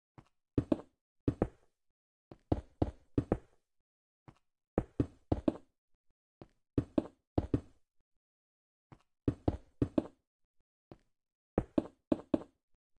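Stone blocks are set down with quick pairs of dull knocks, again and again.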